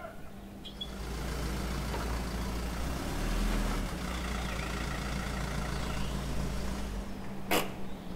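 A car drives up slowly and stops.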